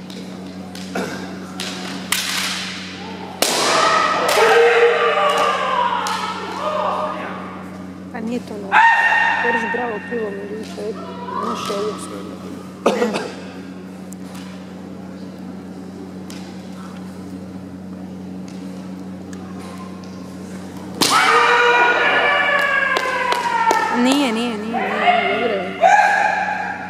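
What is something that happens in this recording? Bamboo swords clack against each other in an echoing hall.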